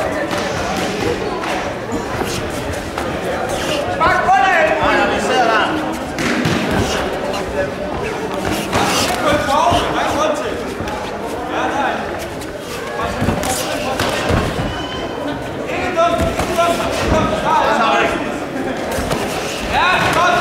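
A crowd murmurs and shouts in a large echoing hall.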